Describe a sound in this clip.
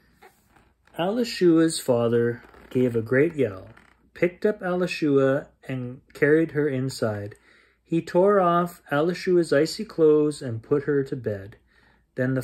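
A middle-aged man reads aloud calmly and expressively, close by.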